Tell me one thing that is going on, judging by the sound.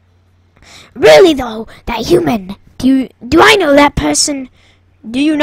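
A young person speaks animatedly into a headset microphone, close up.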